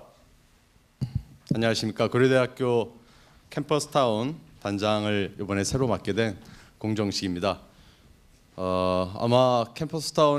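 A middle-aged man speaks calmly into a microphone, heard through loudspeakers in a large room.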